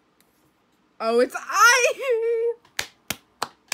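A young woman laughs loudly.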